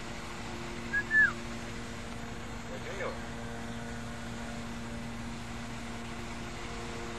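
A small propeller plane's engines drone steadily in the distance.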